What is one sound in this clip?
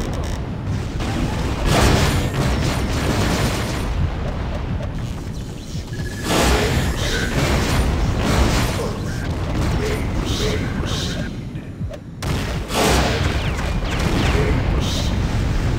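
Explosions boom and crackle in quick bursts.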